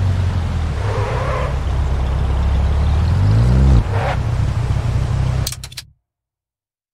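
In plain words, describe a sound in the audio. A car engine idles and revs loudly.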